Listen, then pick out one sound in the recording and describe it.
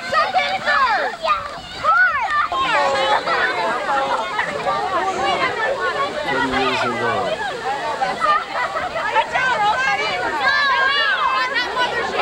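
Adults call out and cheer nearby.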